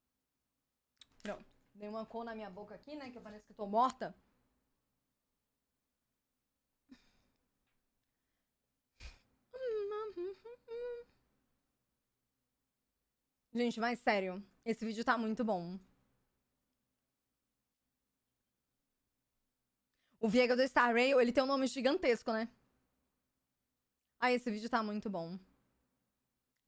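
A young woman talks calmly into a close microphone, in bursts with pauses.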